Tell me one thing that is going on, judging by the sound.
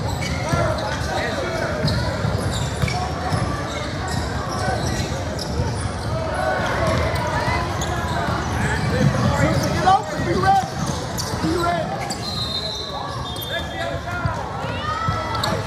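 Young women shout and call out to each other during play.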